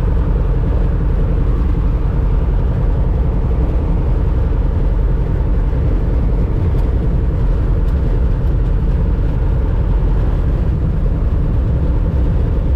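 Wind rushes past the plane.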